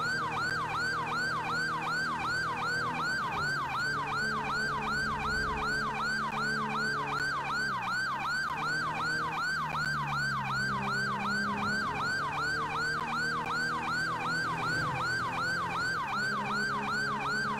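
A police siren wails rapidly and steadily throughout.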